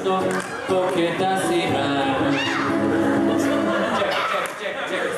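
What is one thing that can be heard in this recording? An acoustic guitar plays a tune on stage.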